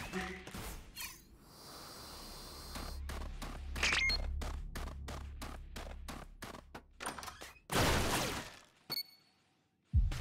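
Footsteps patter quickly across the ground.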